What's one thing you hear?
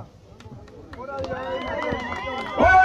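A crowd cheers and murmurs outdoors.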